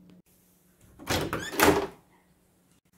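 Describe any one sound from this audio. A door latch clicks as a door is opened.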